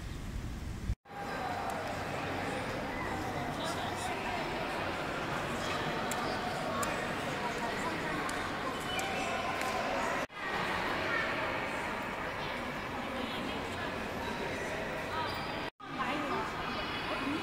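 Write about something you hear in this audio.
A crowd of people murmur and chatter in a large echoing hall.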